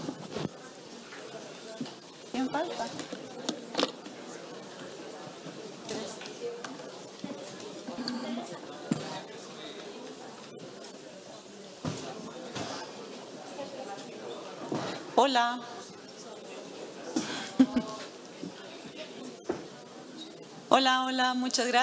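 A large audience murmurs and chatters.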